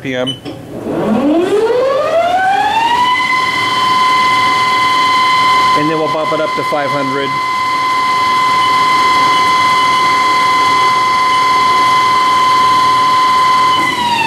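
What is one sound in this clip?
A lathe motor starts and whines up in pitch to a steady high hum.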